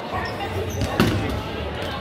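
A ball smacks against a player.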